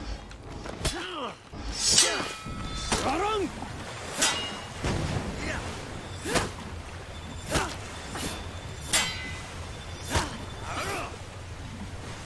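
Metal swords clash and strike in a fight.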